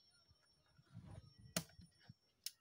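A game piece clicks onto a wooden board.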